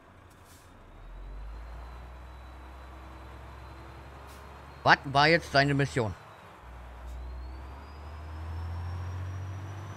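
A truck engine rumbles low and rises as it pulls away.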